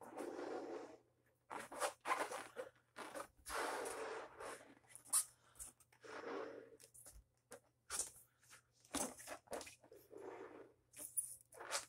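A woman blows hard into a balloon in breathy puffs.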